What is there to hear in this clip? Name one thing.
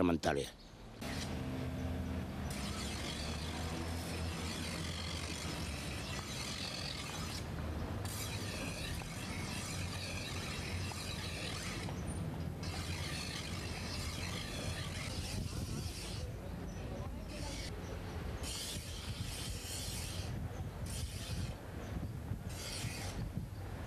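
A grinding wheel hums steadily as it spins.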